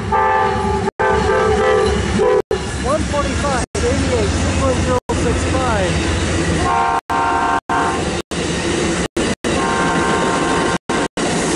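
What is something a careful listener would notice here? A passenger train sounds its horn loudly.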